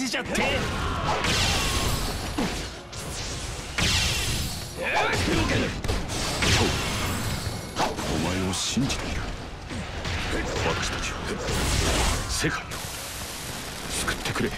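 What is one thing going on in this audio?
Energy blasts burst with loud whooshes.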